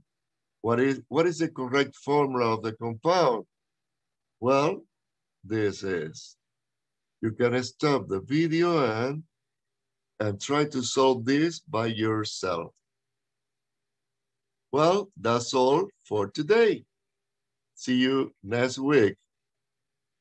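An older man speaks calmly and clearly into a microphone, explaining with short pauses.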